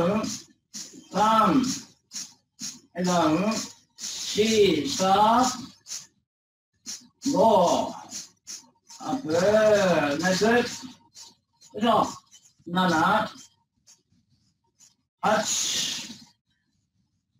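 A man speaks with animation close to a microphone over an online call.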